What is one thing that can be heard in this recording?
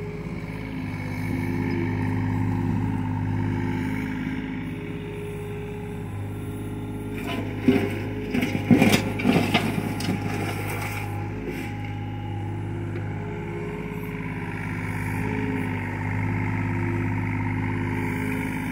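A compact diesel excavator's engine runs and works its hydraulics.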